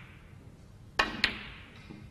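A cue sharply strikes a snooker ball.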